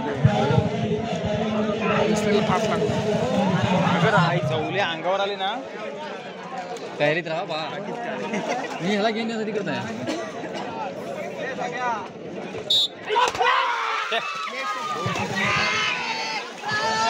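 A crowd of men shouts and chatters loudly outdoors.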